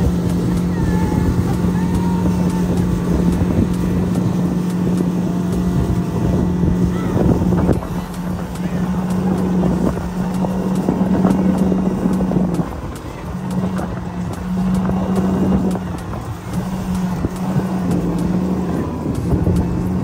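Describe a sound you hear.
Water rushes and splashes in the boat's wake.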